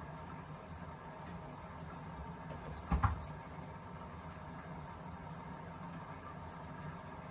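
A washing machine hums steadily with a low drone.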